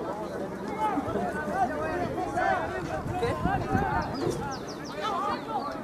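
Spectators nearby talk and cheer.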